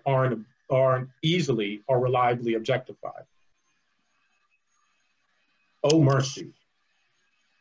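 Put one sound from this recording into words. A man reads aloud with expression, heard through an online call microphone.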